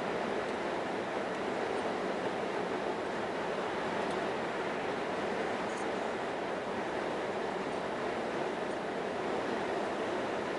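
Tyres roar steadily on a motorway.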